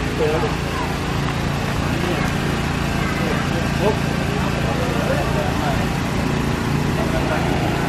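A diesel train engine idles with a steady low rumble nearby.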